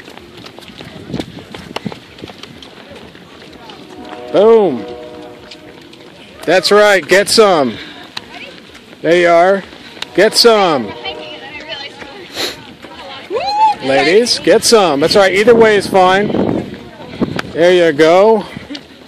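Runners' footsteps patter on pavement.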